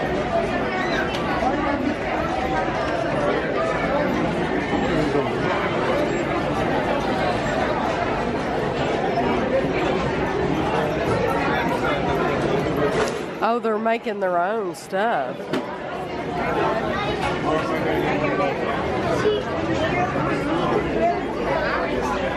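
A crowd of people chatters loudly all around.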